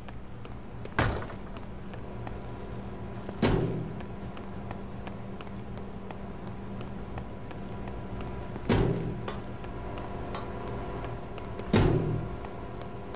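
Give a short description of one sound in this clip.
Heavy doors bang open one after another.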